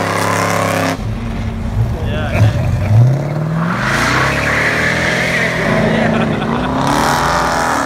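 A muscle car's engine roars as it accelerates past.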